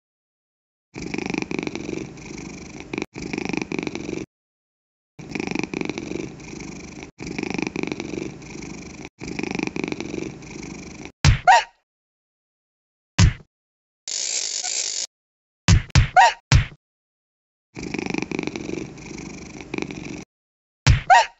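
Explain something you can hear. A cartoon cat purrs steadily in short bursts.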